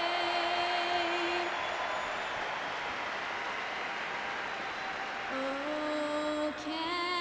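A young woman sings long held notes through a microphone, echoing in a large hall.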